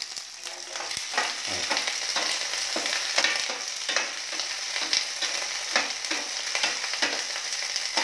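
A metal spoon clinks and scrapes while stirring food in a pan.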